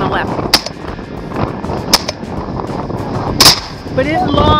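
Shotguns fire loud blasts in quick succession outdoors.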